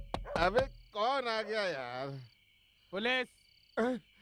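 An older man answers drowsily.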